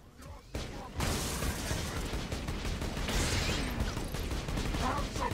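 Electric blasts crackle and fizz.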